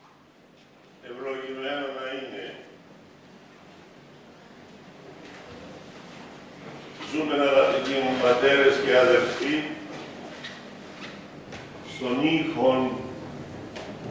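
An elderly man chants slowly into a microphone in an echoing hall.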